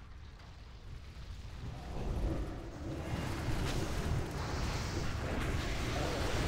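Magic spells and weapon blows crash together in a busy fight.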